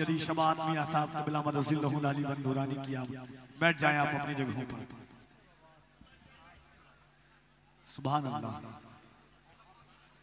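A man chants loudly through a microphone and loudspeakers.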